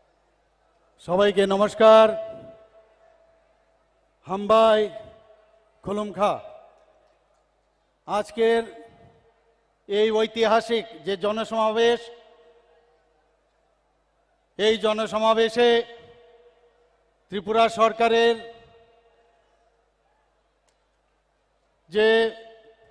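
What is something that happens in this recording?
A middle-aged man speaks slowly and firmly into a microphone, his voice echoing over a loudspeaker outdoors.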